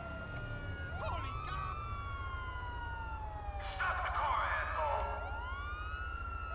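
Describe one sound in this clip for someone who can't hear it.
Police sirens wail and warble nearby.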